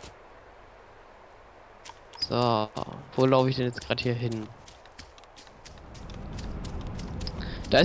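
Footsteps thud softly through grass.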